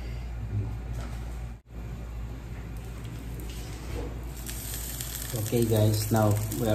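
Oil sizzles softly in a pan.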